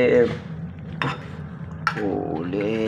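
A fork scrapes and clinks against a pan while stirring noodles.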